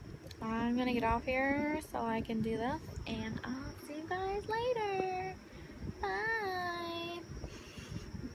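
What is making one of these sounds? A young woman talks playfully and close to a microphone.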